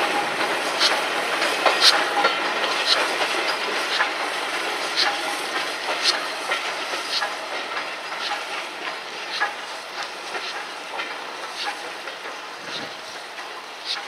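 A steam locomotive chuffs steadily as it pulls away, slowly fading.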